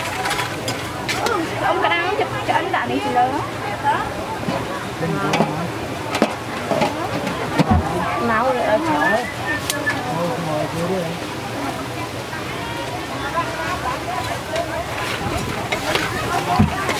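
Food sizzles as it fries in hot oil in a wok.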